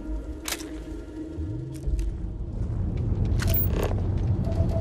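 Interface chimes beep briefly.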